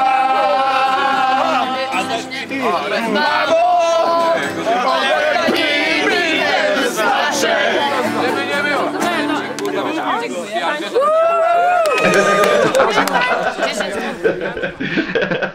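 A man sings loudly nearby.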